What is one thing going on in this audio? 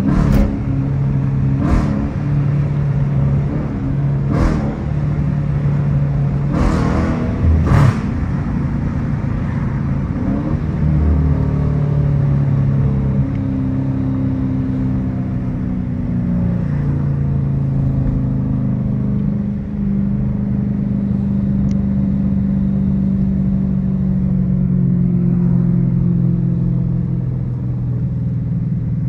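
A car engine rumbles steadily, rising and falling in pitch as the car drives.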